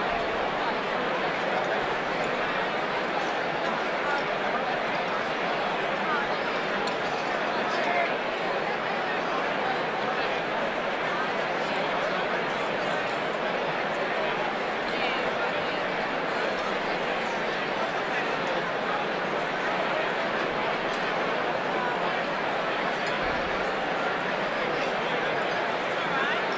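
A large crowd chatters steadily in a big echoing hall.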